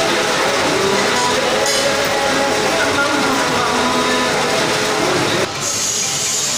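A lathe motor hums and whirs steadily.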